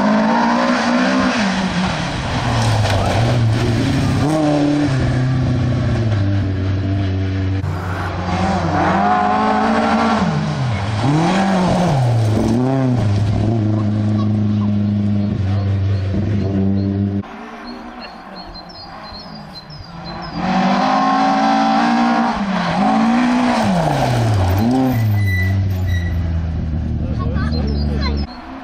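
Tyres spray gravel as the cars slide through a bend.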